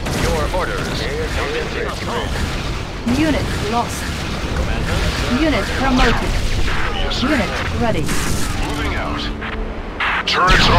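Gunfire rattles steadily.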